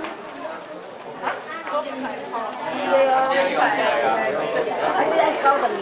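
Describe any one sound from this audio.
People in a group murmur and chatter in the background.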